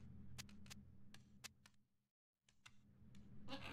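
Short menu clicks tick as a selection moves through a list.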